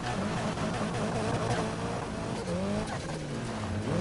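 Tyres skid and hiss on sand.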